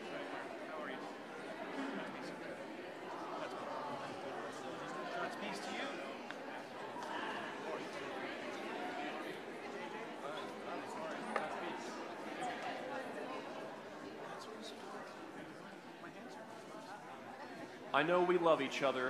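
A crowd murmurs and chats in a large echoing hall.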